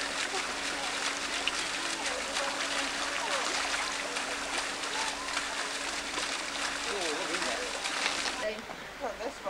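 A fountain splashes steadily into water.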